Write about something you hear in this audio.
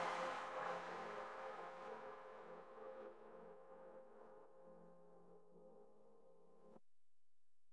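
Electronic music plays through loudspeakers and slowly fades out.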